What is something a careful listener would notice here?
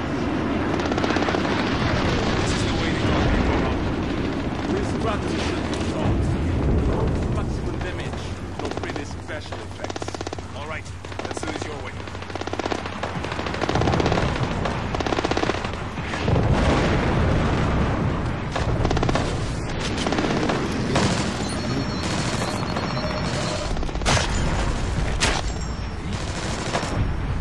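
A low rumble of distant fire and machinery runs throughout.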